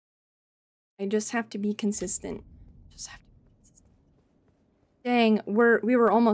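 A young woman speaks with animation into a close microphone.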